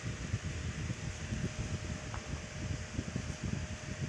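A sheet of paper rustles as it is moved.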